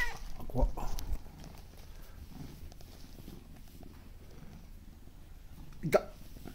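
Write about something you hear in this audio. A cat meows close by.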